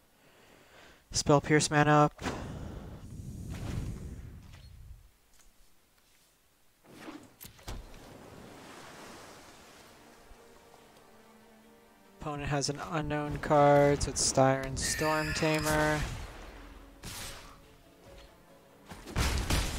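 Soft whooshing game effects sound as cards are played.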